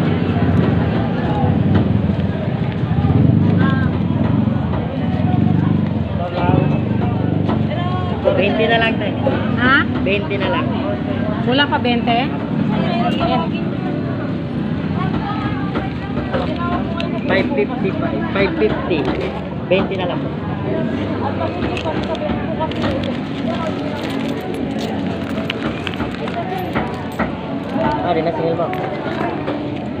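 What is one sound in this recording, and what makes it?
Men and women chatter all around in a busy, noisy crowd.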